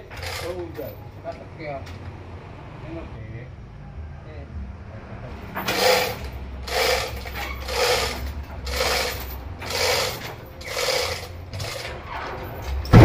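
A heavy sawmill machine hums steadily.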